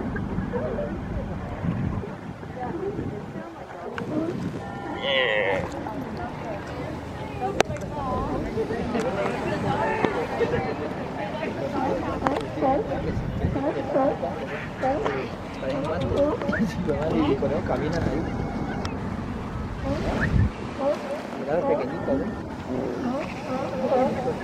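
A colony of sea lions groans and barks close by.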